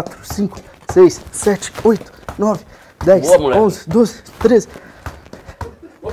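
A football thuds against a foot as a man juggles it.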